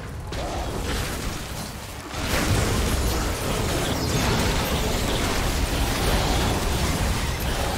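Spell and combat effects from the game burst and crackle loudly.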